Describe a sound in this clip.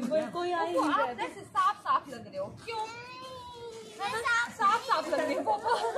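A young girl speaks in a high voice.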